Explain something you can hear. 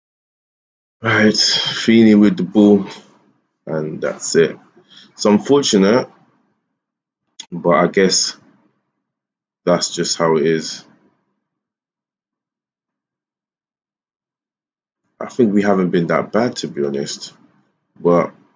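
A man talks calmly into a microphone, close by, in short bursts.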